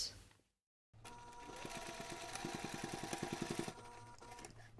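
A sewing machine runs, stitching with a rapid rhythmic whirr.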